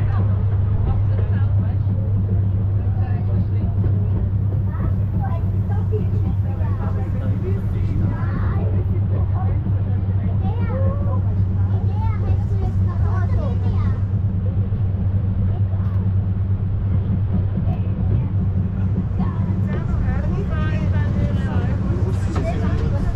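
A cog train rumbles and hums steadily as it rolls along.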